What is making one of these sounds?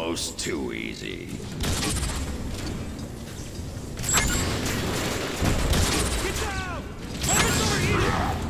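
A grenade launcher fires with a heavy thump.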